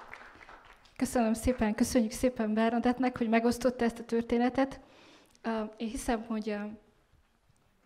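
A second young woman speaks with animation into a microphone.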